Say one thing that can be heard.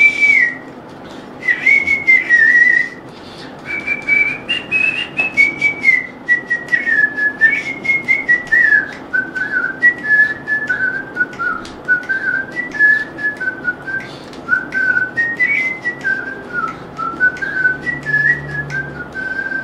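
A flute plays a lilting melody over an online call.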